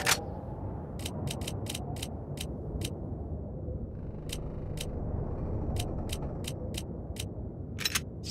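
Short, crisp menu clicks tick again and again.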